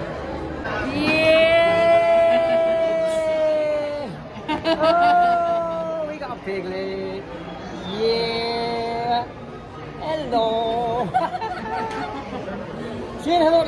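A woman talks and laughs close by, with animation.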